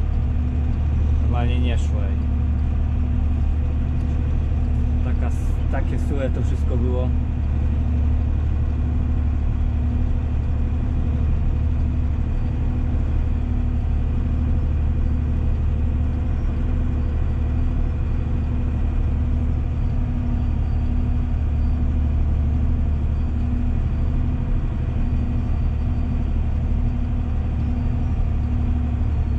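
A tractor engine drones steadily and loudly from inside the cab.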